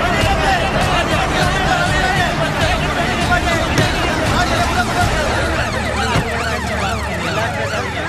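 A large crowd of men shouts and cries out loudly outdoors.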